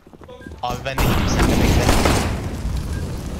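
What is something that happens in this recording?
A pistol fires in quick shots.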